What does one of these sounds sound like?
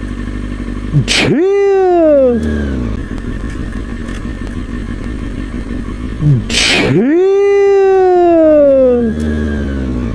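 A motorcycle engine revs sharply and slowly winds down, twice.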